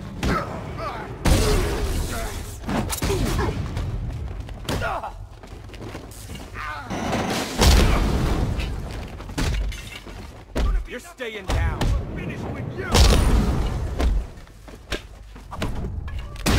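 Heavy punches and kicks land with dull thuds in a fast brawl.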